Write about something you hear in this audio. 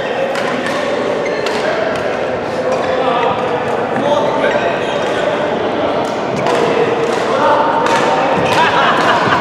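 Young men and women chatter and call out nearby.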